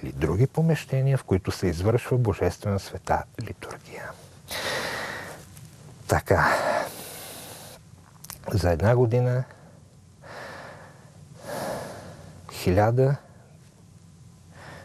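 Pages of a book rustle as a man turns them.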